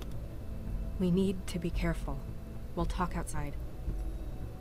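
A woman speaks quietly and anxiously, close by.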